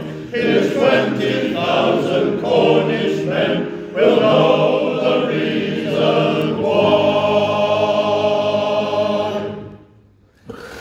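A male choir sings together in a large echoing hall.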